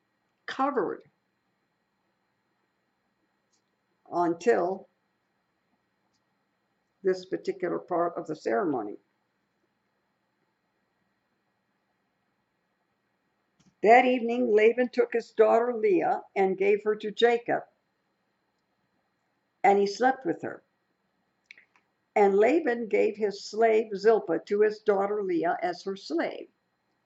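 An elderly woman speaks calmly into a microphone, with pauses.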